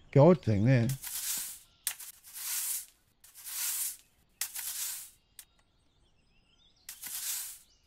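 A broom sweeps with short, brisk swishing strokes.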